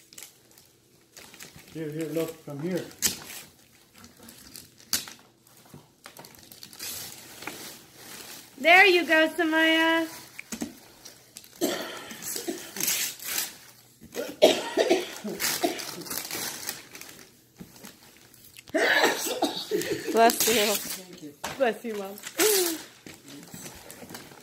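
Wrapping paper rustles and tears as a young girl opens a present.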